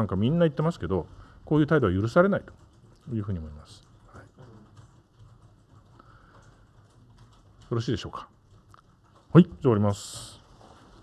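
A middle-aged man speaks calmly into a microphone in short bursts.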